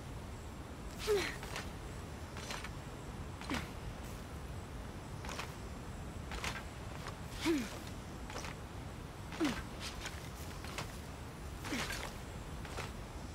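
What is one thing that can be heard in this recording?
A climber's hands and feet scrape and knock against rock in short bursts.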